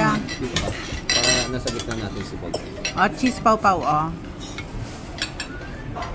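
A serving spoon scrapes against a metal pan.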